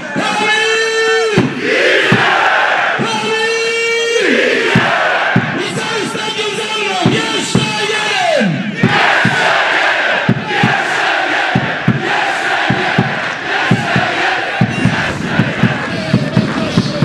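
A large crowd of fans chants and sings loudly outdoors.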